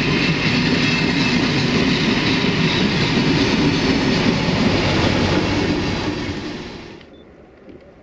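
A passenger train rumbles and clatters past close by.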